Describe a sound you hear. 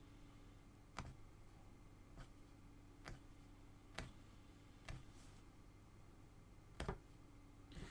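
A punch needle taps and pokes through stretched cloth.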